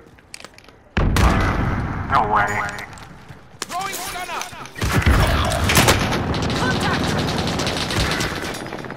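Shotgun blasts boom close by.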